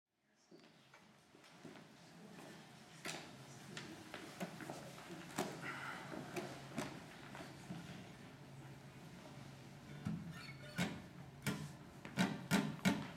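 An acoustic guitar strums a rhythm.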